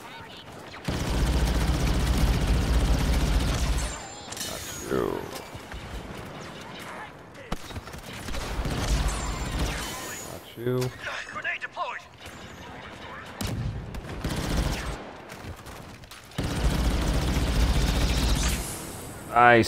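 Blaster rifles fire in rapid bursts of laser shots.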